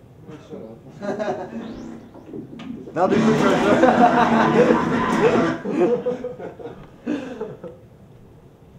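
A young man talks and laughs loudly close by.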